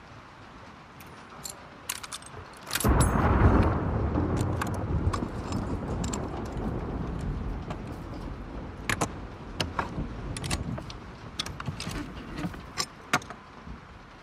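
Small metal parts click and clatter as a bow is worked on.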